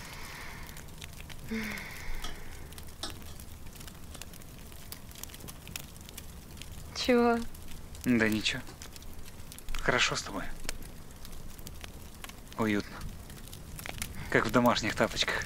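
A fire crackles close by.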